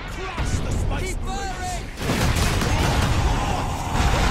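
A heavy hammer slams down with a deep rumbling blast.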